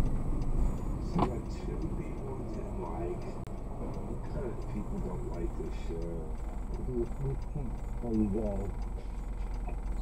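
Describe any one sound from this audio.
A car engine idles quietly.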